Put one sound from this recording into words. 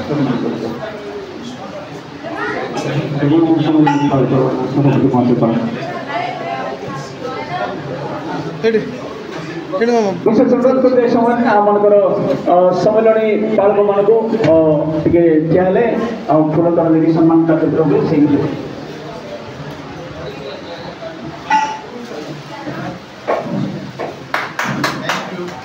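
A crowd of men and women chatters nearby indoors.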